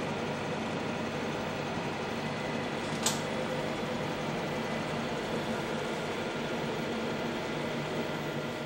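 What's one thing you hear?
An old computer's cooling fan hums steadily.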